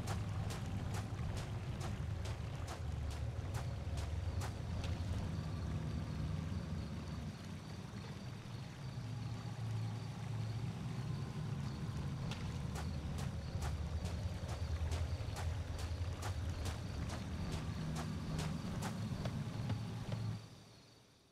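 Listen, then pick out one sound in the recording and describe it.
Footsteps tap steadily on a hard path.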